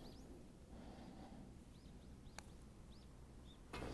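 A golf putter taps a ball.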